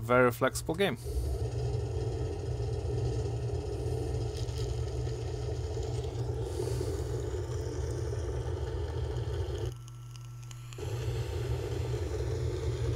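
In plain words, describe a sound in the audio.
A drill grinds loudly through rock.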